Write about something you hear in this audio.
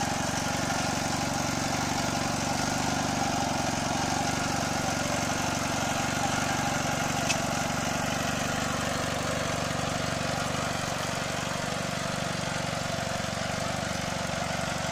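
A small engine chugs steadily up close.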